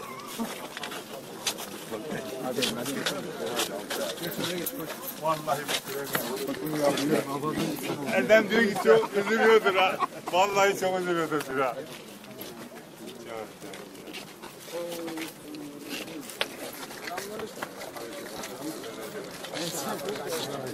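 A crowd of men talks and shouts close by.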